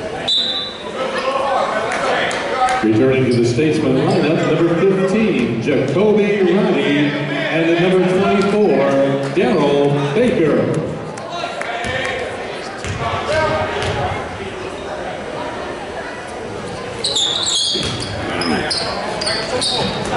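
A crowd of men and women talks and calls out, echoing in a large hall.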